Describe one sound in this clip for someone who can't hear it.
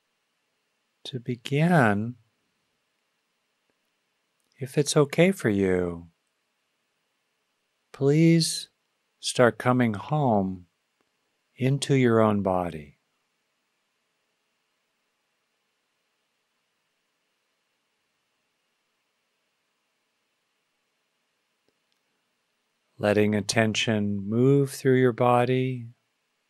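An older man speaks slowly and calmly into a close microphone, with long pauses.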